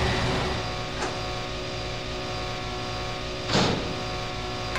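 A heavy door opens with a loud clank.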